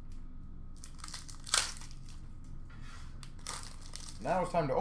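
Foil card packs rustle and crinkle in someone's hands.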